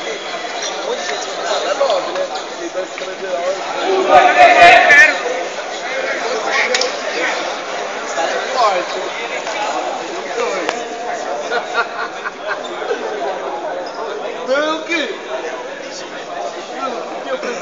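Spectators chatter throughout a large echoing hall.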